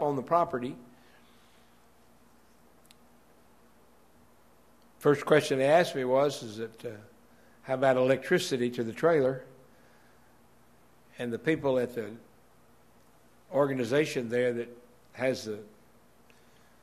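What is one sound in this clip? A middle-aged man speaks slowly and calmly through a microphone, with long pauses.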